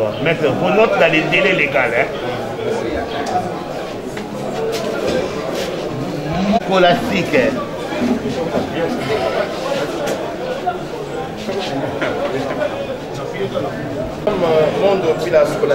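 Paper rustles as pages are turned and handled.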